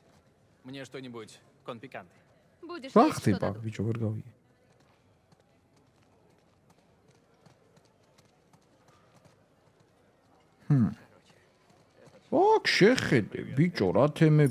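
Game characters speak in short lines of dialogue.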